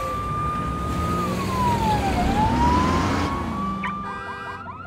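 A police siren wails, its pitch sliding down and back up.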